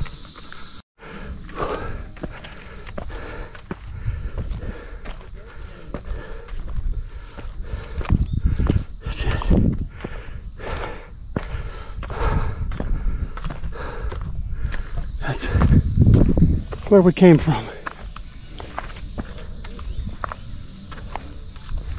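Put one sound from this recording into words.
Footsteps thud and scrape on bare rock.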